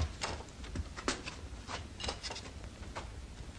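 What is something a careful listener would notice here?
Plates clatter on a table.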